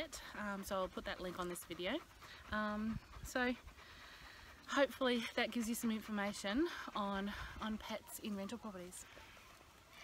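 A woman talks calmly and warmly close by.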